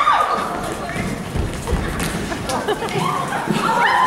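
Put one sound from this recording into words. Feet stomp and shuffle on a wooden stage as dancers move.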